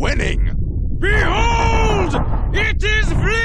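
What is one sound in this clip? A man declares something loudly and dramatically.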